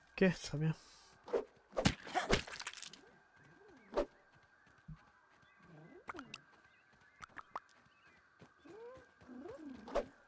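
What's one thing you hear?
Footsteps patter quickly over soft ground.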